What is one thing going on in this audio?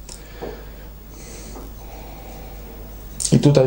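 A young man sips a drink.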